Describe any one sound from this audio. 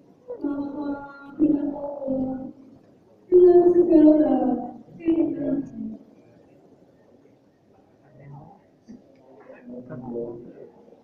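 A man reads out over a loudspeaker in a large echoing hall.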